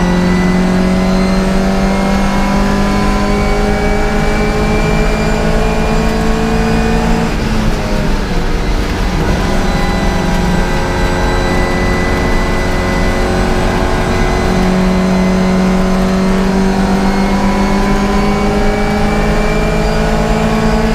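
A classic Mini race car's four-cylinder engine roars at high revs from inside the cabin, easing off for a corner and then climbing again.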